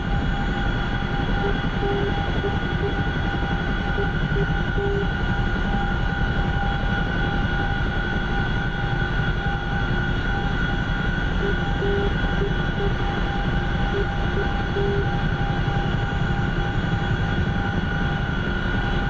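A helicopter engine and rotor whine and thump steadily, heard from inside the cockpit.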